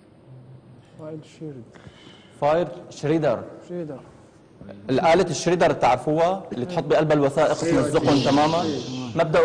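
A man speaks with animation to a group.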